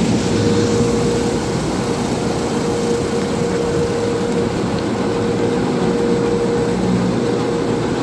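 Car wash brushes scrub and thump against the car.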